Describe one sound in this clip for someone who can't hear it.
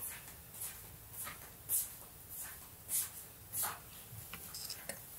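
Clothing swishes and rustles as arms swing back and forth.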